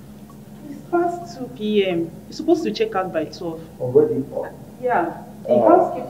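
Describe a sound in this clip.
A woman speaks firmly and close by.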